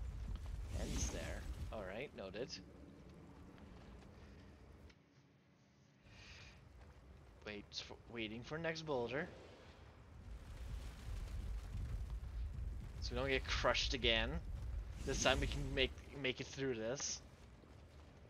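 A young man talks through a headset microphone.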